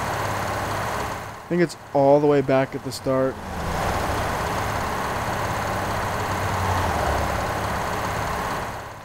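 A truck engine drones steadily at highway speed.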